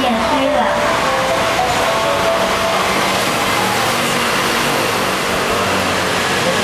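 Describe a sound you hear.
A woman sings into a microphone through a loudspeaker.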